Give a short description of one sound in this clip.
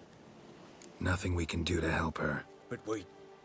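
A man answers in a low, gravelly voice, close by.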